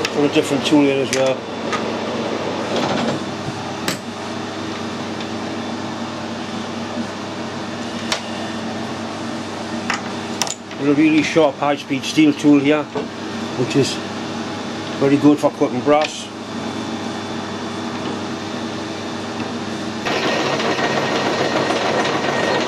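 A lathe motor hums steadily as the spindle turns.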